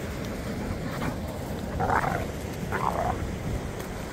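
A dog pants loudly close by.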